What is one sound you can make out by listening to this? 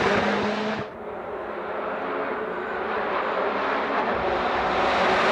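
A race car engine approaches from a distance, growing louder.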